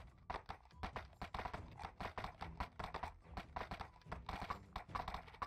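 Horse hooves clop on a gravel path.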